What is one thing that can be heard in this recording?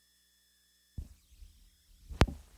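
Hands knock and rub against a turntable.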